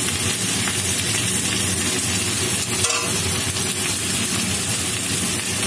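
A metal spatula scrapes and stirs against a metal pan.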